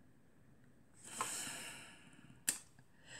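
A woman sniffs deeply at something held to her nose.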